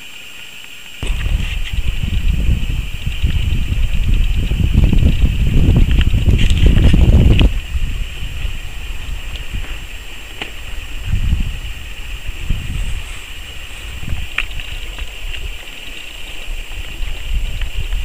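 A stream trickles under ice.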